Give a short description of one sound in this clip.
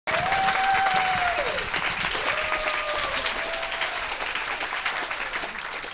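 An audience applauds with steady clapping.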